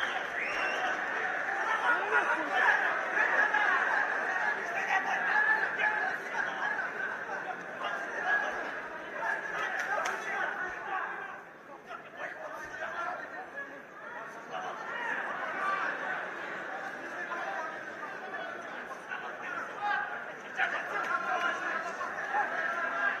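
A crowd cheers and shouts loudly in a large hall.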